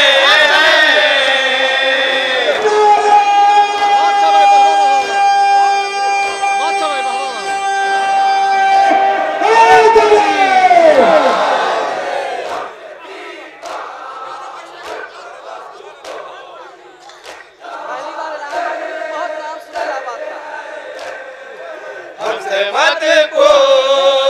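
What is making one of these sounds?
A man chants loudly into a microphone through loudspeakers.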